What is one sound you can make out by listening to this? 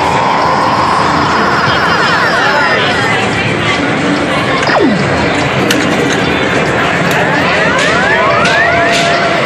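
An arcade machine plays electronic beeps and jingles.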